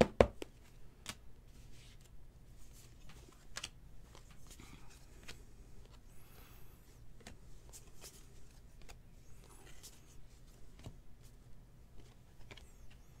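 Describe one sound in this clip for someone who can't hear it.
Trading cards shuffle and flick softly between fingers.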